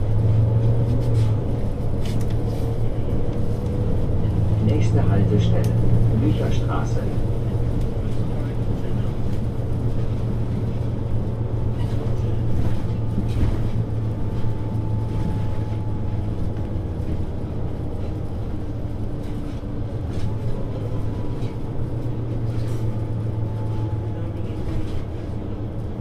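A vehicle's engine hums low and steady from inside as it drives along.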